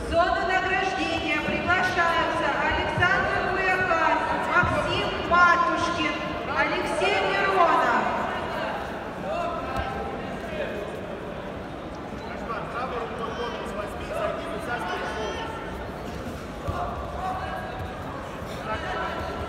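A man shouts instructions loudly in a large echoing hall.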